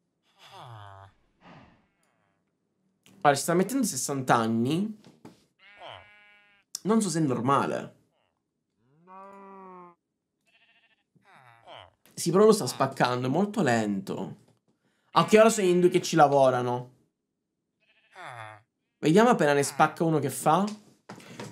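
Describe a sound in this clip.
A young man talks with animation close to a microphone, in bursts with pauses.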